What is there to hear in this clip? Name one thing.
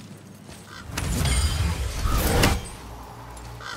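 An axe swings through the air with a heavy whoosh.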